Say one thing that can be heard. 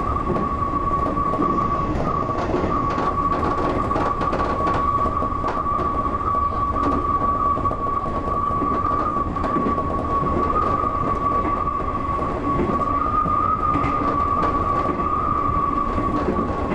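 A train's motor hums with a steady high whine.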